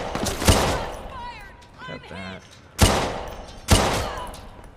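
Gunshots ring out loudly and echo.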